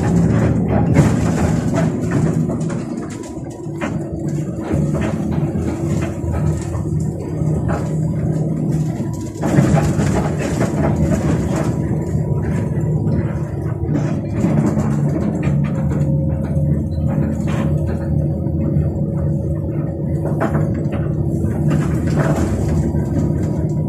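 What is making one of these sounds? A bus engine drones steadily from inside the cabin.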